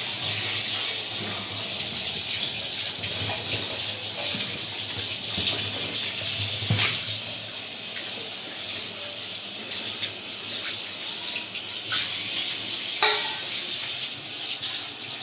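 Hands splash and rub in water.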